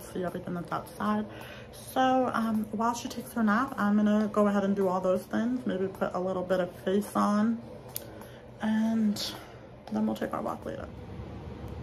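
A young woman talks close up, calmly and conversationally.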